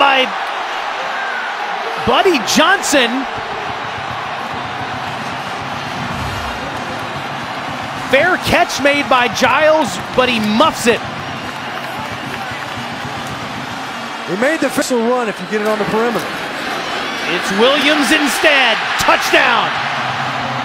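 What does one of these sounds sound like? A large crowd roars and cheers.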